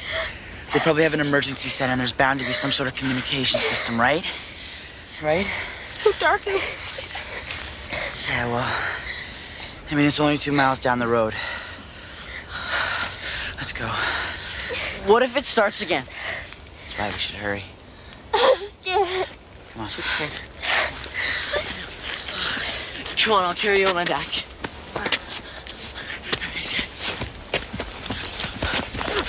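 A teenage boy speaks urgently, close by.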